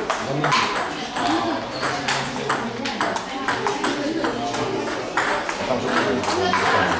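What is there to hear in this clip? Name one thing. A table tennis ball clicks back and forth on paddles and the table.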